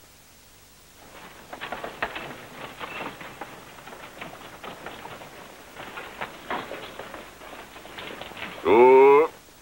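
Horses' hooves clop on a dirt street.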